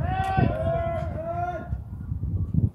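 A man calls out loudly nearby.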